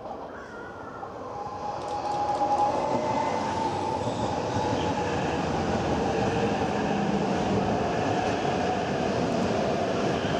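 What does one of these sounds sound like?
Wheels rumble over the rails.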